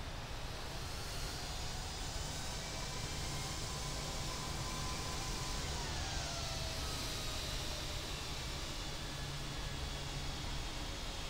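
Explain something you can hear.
A jet engine's high whine rises in and then drops in pitch.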